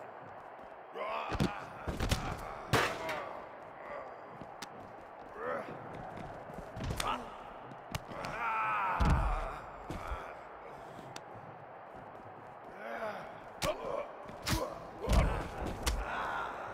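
Heavy bodies slam down hard with loud thuds.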